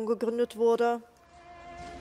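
A crowd of men chants loudly in unison.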